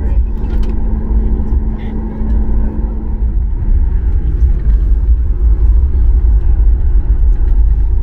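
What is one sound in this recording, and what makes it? A jet plane's engines roar steadily, heard from inside the cabin.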